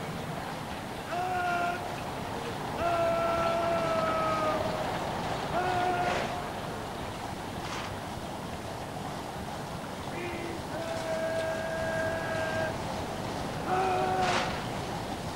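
A trumpet sounds short, held calls.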